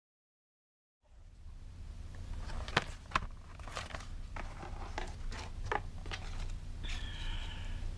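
A reel-to-reel tape machine hums steadily.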